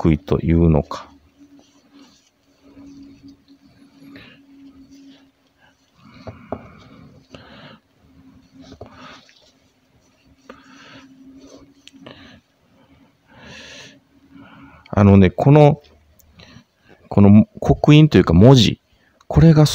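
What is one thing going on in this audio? Metal wrenches clink and scrape softly against a tabletop.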